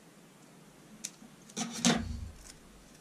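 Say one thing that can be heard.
Scissors snip paper.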